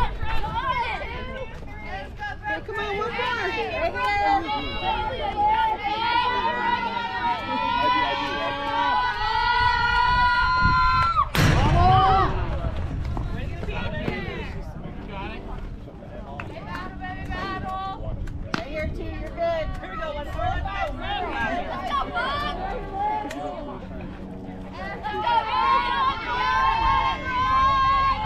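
Young women chant and cheer loudly outdoors.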